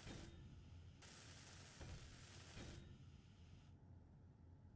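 A welding tool hisses and crackles in a game.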